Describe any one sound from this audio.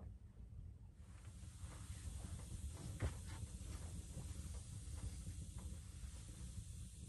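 A thick blanket rustles as it is pulled and folded.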